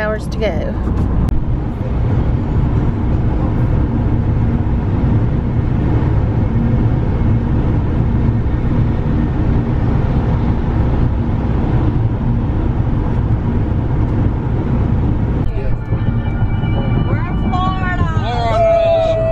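A car hums steadily as it drives along a highway, heard from inside.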